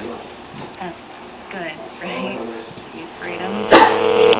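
A young woman talks quietly into a phone nearby.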